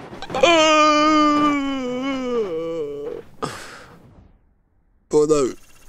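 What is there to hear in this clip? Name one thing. A young man yells a long, drawn-out cry into a close microphone.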